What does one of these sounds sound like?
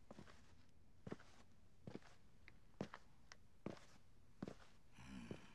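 Footsteps tap slowly across a hard floor.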